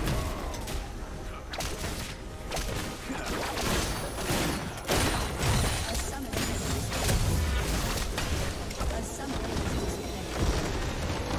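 Spell effects whoosh and crackle in a fast battle.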